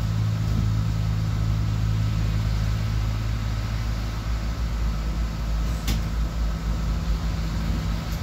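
A windscreen wiper sweeps across the glass.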